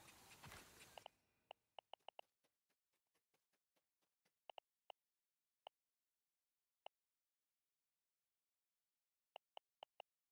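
Short soft clicks tick as a menu cursor moves.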